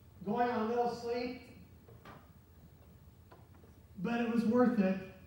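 A middle-aged man speaks calmly to an audience in a room with a slight echo.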